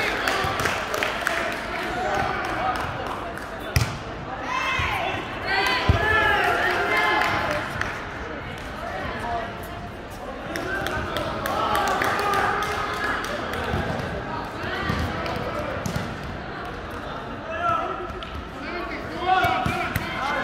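Men call out to each other during a volleyball game in a large echoing hall.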